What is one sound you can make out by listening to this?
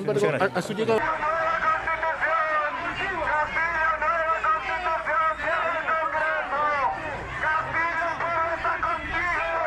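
A crowd of men and women chants loudly close by.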